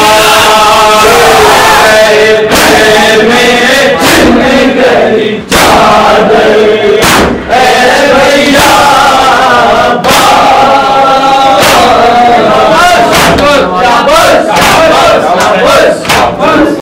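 A group of men chant loudly together in a rhythmic lament.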